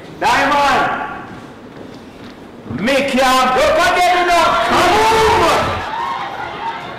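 A man speaks loudly and with animation through a microphone.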